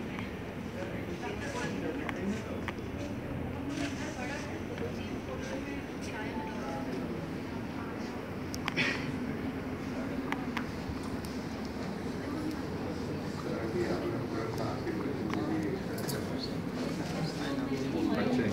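A crowd of men and women chat nearby in a room that echoes.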